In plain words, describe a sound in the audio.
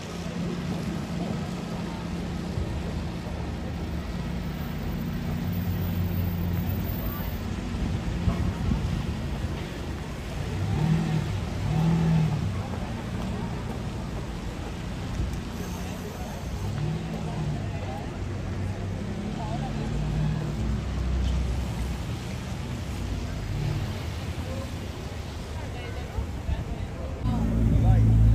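A sports car engine rumbles at idle close by.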